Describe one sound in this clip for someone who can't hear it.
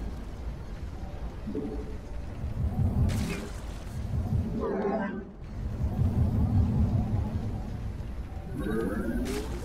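Rapid energy blasts and explosions crackle in a battle.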